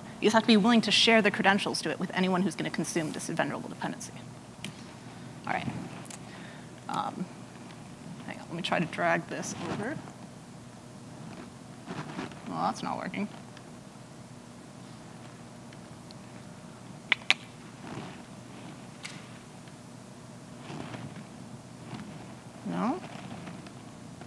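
A woman speaks into a microphone in a large room, pausing often.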